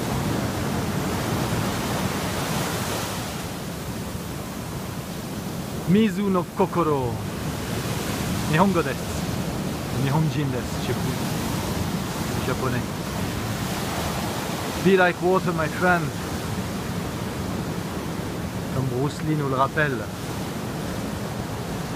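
Surf foams and hisses over sand.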